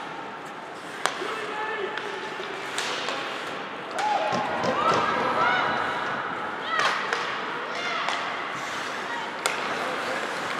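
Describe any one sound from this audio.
A hockey stick smacks a puck with a sharp crack.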